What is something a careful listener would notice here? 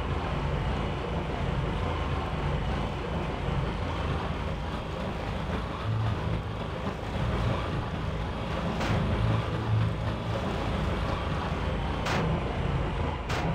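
A boat engine drones steadily as the boat speeds across water.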